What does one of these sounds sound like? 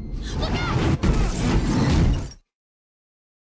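A car crashes with a loud impact.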